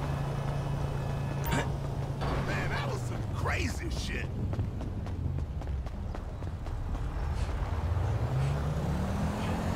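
Footsteps crunch on snow as a man runs.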